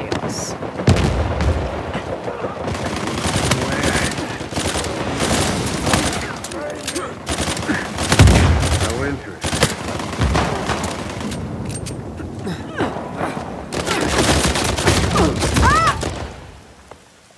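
Pistol shots crack in rapid bursts.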